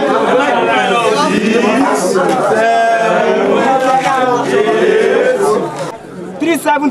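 A crowd of young men talks loudly and excitedly nearby.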